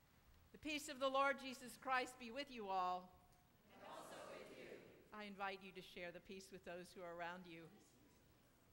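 A woman sings out through a microphone in a large echoing hall.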